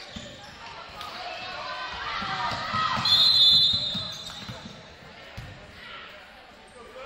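A crowd cheers and shouts in a large echoing gym, swelling loudly and then fading.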